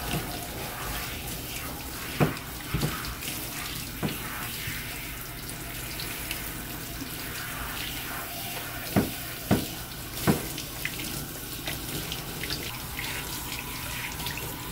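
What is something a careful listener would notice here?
Water splashes onto a dog's wet fur.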